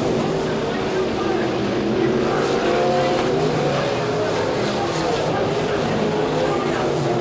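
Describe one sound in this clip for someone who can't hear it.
V8 sprint cars roar at full throttle around a dirt oval.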